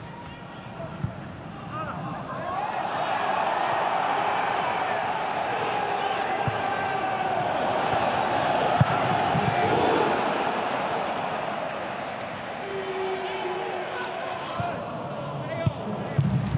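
A football thuds as players kick it on a grass pitch.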